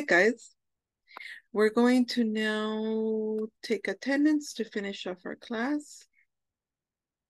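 A young woman speaks clearly over an online call, drawing out one word.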